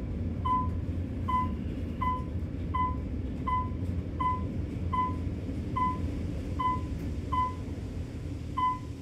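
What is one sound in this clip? An elevator chimes briefly at each floor it passes.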